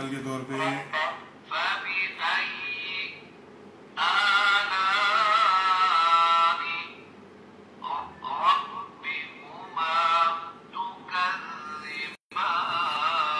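A small electronic pen plays a recorded voice chanting through a tiny loudspeaker.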